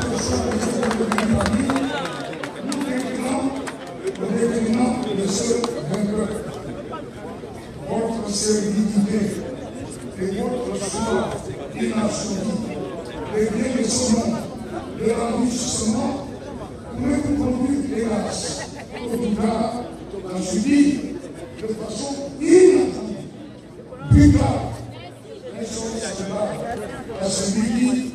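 An elderly man speaks slowly and forcefully into a microphone over a loudspeaker, outdoors.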